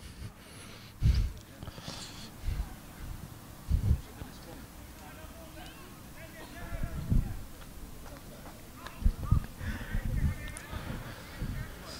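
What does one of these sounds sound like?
Players shout in the distance outdoors.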